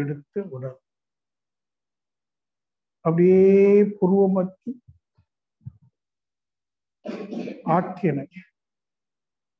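An elderly man speaks slowly and with pauses over an online call.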